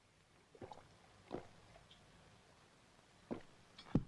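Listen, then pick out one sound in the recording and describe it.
A man gulps down a drink.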